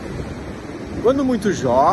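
A middle-aged man speaks close to a phone microphone with animation.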